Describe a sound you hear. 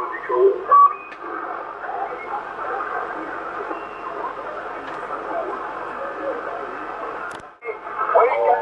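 A radio receiver hisses with static.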